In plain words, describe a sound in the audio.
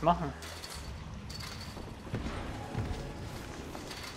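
A magic spell whooshes and shimmers.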